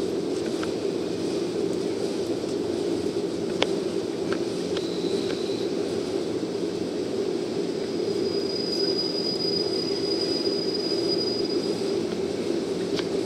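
A diesel train engine rumbles steadily as the train rolls slowly in.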